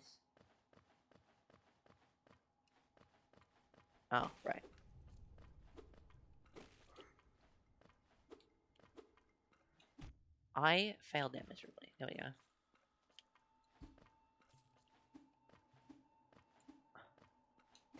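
Small quick footsteps patter along.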